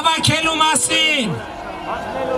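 A man speaks loudly into a microphone, heard through loudspeakers outdoors.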